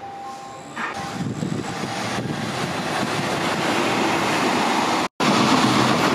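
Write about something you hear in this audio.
A train approaches in the distance.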